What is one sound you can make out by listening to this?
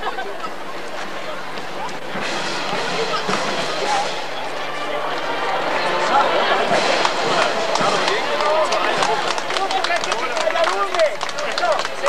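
Girls chatter nearby outdoors.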